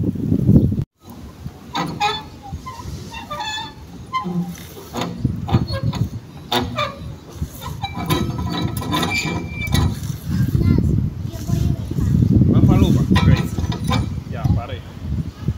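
A metal playground carousel creaks as it turns.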